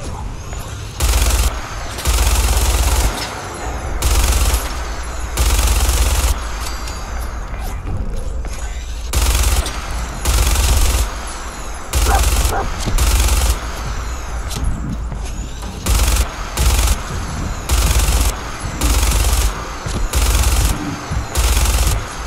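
A heavy machine gun fires in loud, rapid bursts.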